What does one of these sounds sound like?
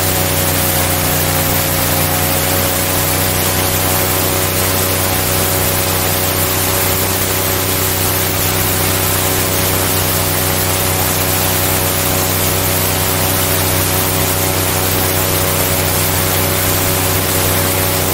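Water rushes and churns behind a fast boat.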